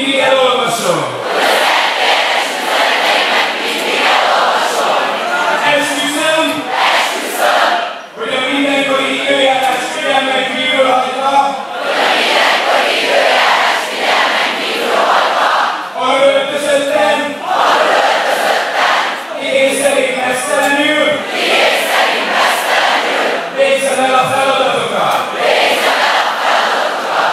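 A large crowd cheers and roars.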